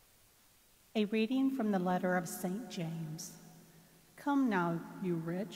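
A middle-aged woman sings through a microphone.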